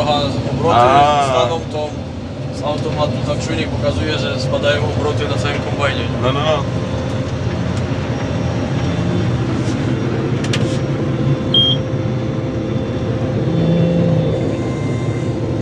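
A tractor engine runs close by.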